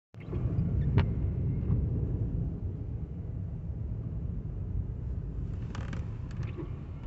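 A car drives on a snowy road, with a low rumble heard from inside the car.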